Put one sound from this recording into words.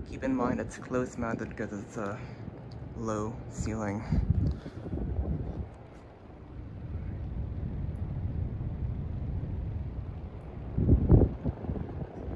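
A ceiling fan whirs steadily with a low hum.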